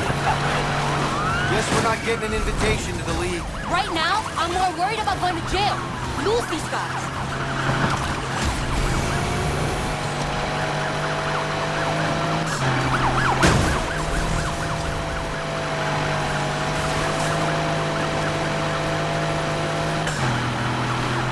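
A car engine roars at high speed and shifts gears.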